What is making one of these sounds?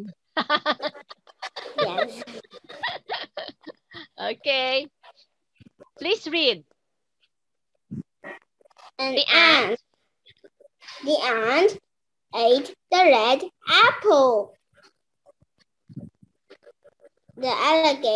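A woman speaks clearly and with animation over an online call.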